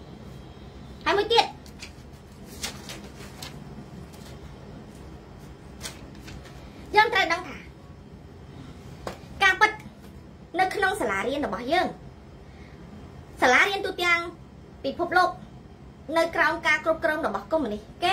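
A woman speaks with animation close to a microphone, in short bursts.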